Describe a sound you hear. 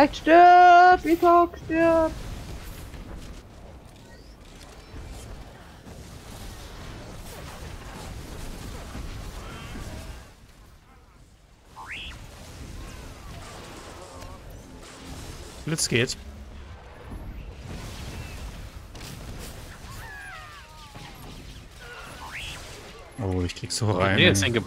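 Electric zaps and magical blasts crackle in a battle.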